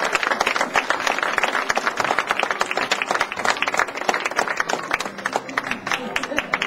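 An audience claps and applauds steadily in a large echoing hall.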